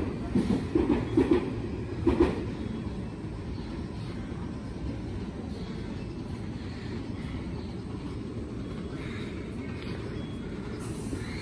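An electric train idles nearby with a steady low hum.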